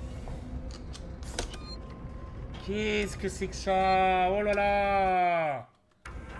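Buttons click on an emergency phone panel.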